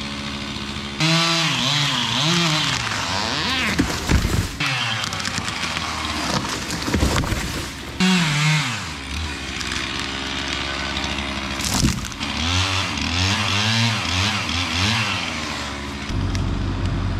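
A chainsaw revs and whines up and down close by.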